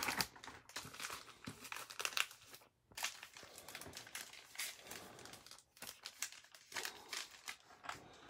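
Foil card packs crinkle and rustle in hands.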